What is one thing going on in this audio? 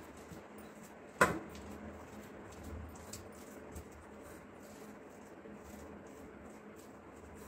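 Fingers crumble and mix soft food in a metal plate.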